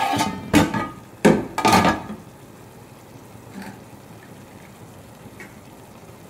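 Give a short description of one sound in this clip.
Food sizzles in a hot pot.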